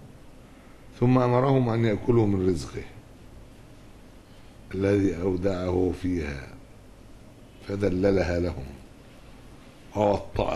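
An elderly man reads out slowly into a microphone, in short phrases with pauses.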